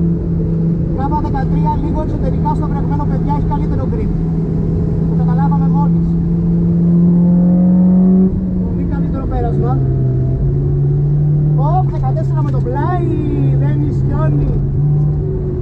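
Tyres squeal in short bursts as the car slides through corners.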